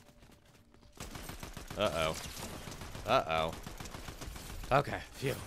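Gunshots crack rapidly in a video game.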